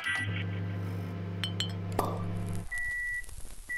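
A microwave oven hums as it runs.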